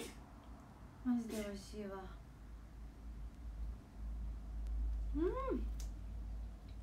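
A young woman makes brief, drawn-out vocal sounds close by.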